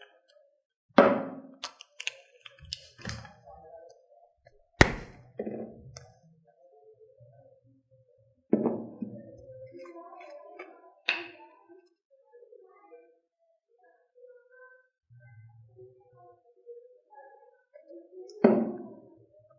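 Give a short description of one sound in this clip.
Objects knock and clatter in a woman's hands.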